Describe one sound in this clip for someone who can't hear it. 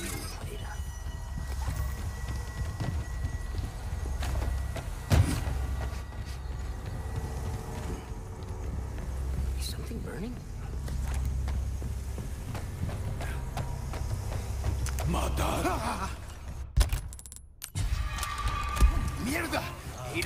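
Footsteps thud on creaking wooden boards.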